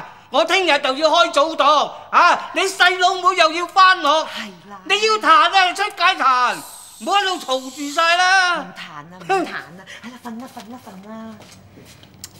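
A middle-aged woman shouts angrily, close by.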